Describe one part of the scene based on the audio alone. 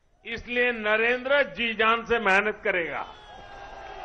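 An elderly man speaks forcefully into a microphone over loudspeakers.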